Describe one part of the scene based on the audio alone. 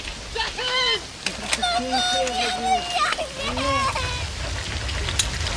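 A young girl cries and wails.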